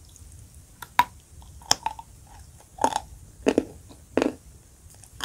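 A woman bites into something crisp with a loud crunch, close to a microphone.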